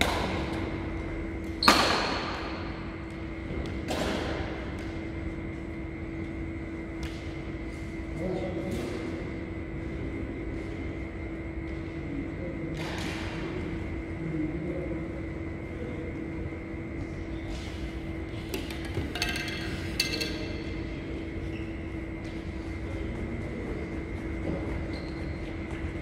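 Sports shoes squeak on the court floor.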